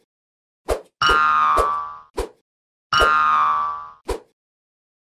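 Bright electronic game jingles play.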